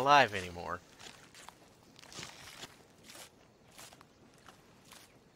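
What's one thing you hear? A horse's hooves shuffle softly on grass.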